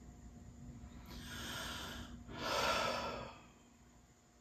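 A man breathes in and then out deeply, close by.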